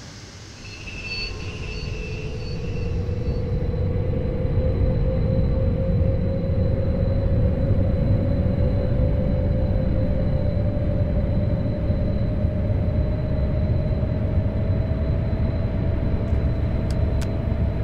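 An electric train motor whines, slowly rising in pitch as the train speeds up.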